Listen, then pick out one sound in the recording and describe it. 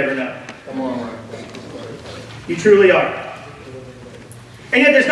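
A middle-aged man speaks steadily into a microphone.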